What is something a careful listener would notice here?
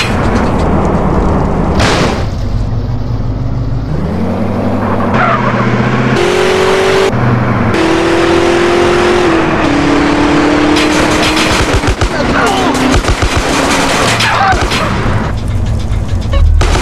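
A car engine revs hard as the car speeds along.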